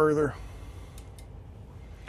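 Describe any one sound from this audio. A button clicks once.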